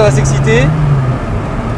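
A man speaks briefly inside the car.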